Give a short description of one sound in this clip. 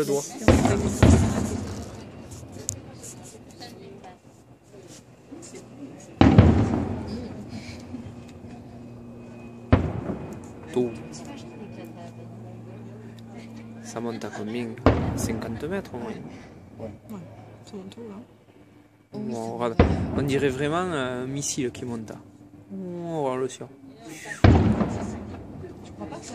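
Fireworks burst with loud, echoing booms at intervals.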